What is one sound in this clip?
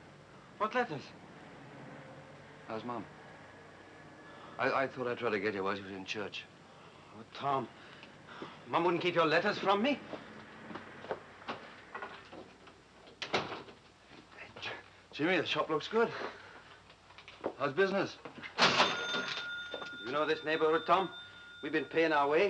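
A young man talks calmly, close by.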